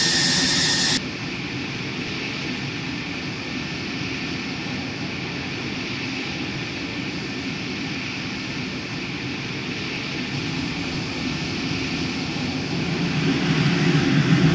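A jet engine whines and hums steadily nearby.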